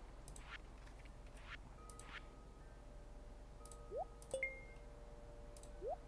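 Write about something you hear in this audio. Soft blips and pops sound from a game menu.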